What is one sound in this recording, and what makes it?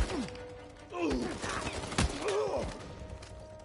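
A man grunts in pain.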